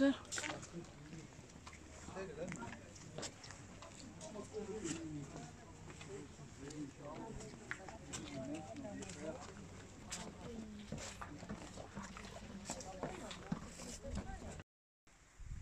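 A crowd of people murmurs and chatters in the distance outdoors.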